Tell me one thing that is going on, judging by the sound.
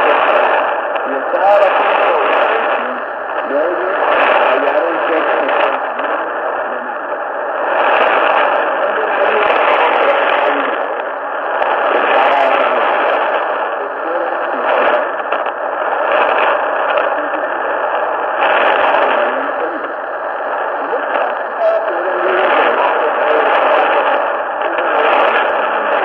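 A shortwave communications receiver plays a weak AM broadcast through static, fading in and out.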